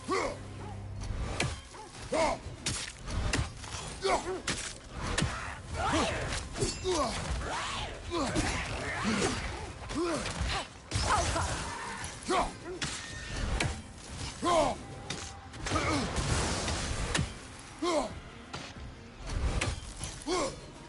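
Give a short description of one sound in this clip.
Heavy blows and impacts thud and clang repeatedly.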